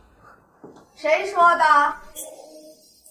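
A young woman speaks, close by.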